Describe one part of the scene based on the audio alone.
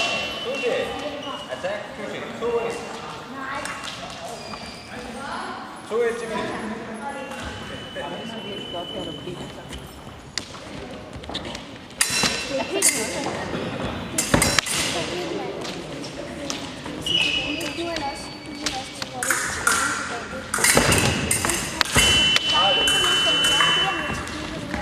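People talk in the background of a large echoing hall.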